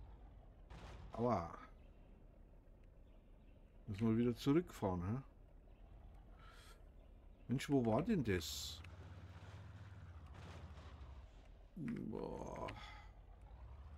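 An elderly man speaks calmly into a microphone in short bursts.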